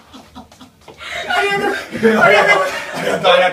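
A young woman laughs and squeals excitedly close by.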